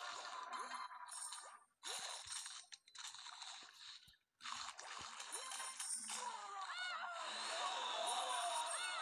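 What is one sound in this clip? Game sound effects crunch and splash.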